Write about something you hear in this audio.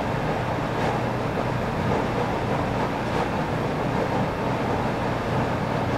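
Thin wires rustle and click as fingers handle them.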